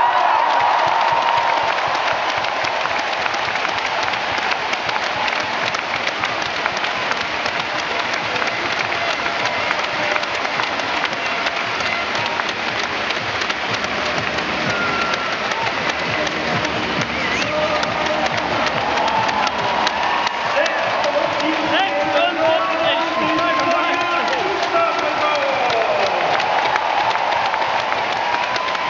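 A large stadium crowd murmurs and chatters steadily, echoing under a vast roof.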